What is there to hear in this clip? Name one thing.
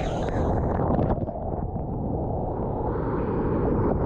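A wave breaks and crashes close by.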